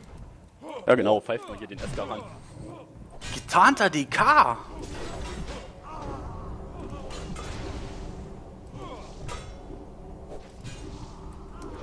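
Weapon blows strike in a fight.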